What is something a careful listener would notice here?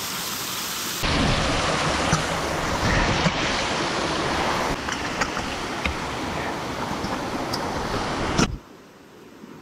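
Water rushes loudly down a rocky stream.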